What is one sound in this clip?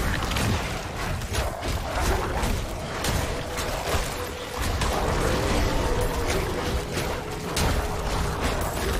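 Spells crackle and explode in quick bursts during a fantasy battle.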